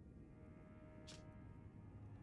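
A soft game menu click sounds once.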